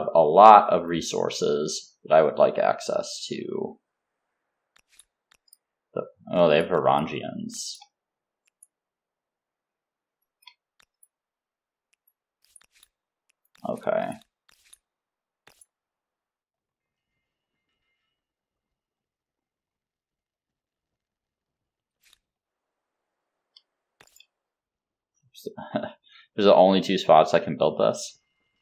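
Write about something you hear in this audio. A young man talks casually into a close microphone, in short bursts with pauses.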